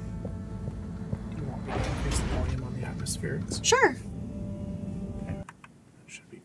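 Atmospheric game music plays with a low rumble.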